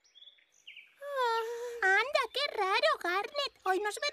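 A young girl's high-pitched cartoon voice speaks with animation.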